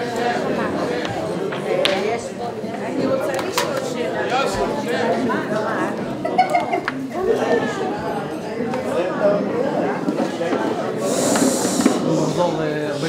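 A crowd of men and women chatter loudly in a large room.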